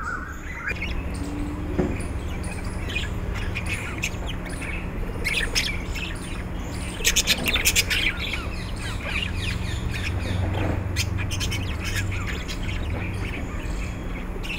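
A budgerigar chirps and twitters close by.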